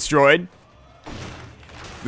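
A video game explosion bursts with a crackle.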